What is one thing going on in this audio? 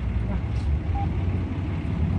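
A cash machine beeps briefly.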